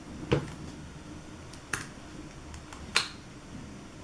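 Fingers tap sharply on a hard surface a few times.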